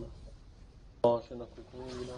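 A sharp blow strikes once.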